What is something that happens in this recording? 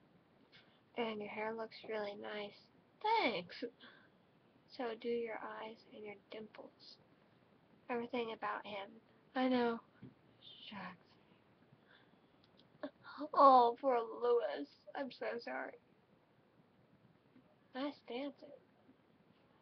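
A young woman talks calmly and quietly, close to a microphone, with pauses.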